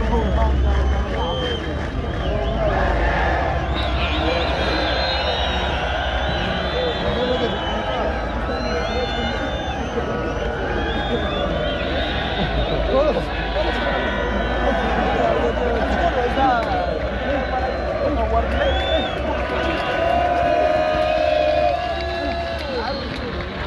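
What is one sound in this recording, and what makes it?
A large outdoor crowd cheers, shouts and whistles nearby.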